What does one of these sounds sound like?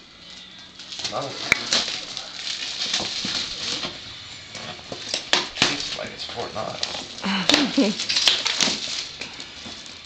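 Wrapping paper rustles and tears as a gift is unwrapped.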